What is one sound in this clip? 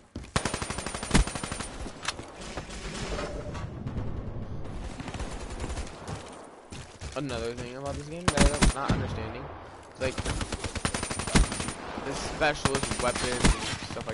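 A sniper rifle fires sharp single shots.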